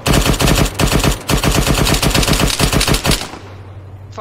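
Rapid gunshots ring out in quick succession.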